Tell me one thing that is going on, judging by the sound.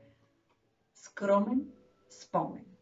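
A woman speaks calmly and close by, as if reading aloud.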